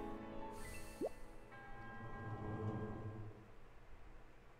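A shimmering game melody plays and then fades away.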